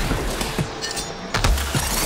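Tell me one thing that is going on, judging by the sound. A bow string twangs as arrows are shot.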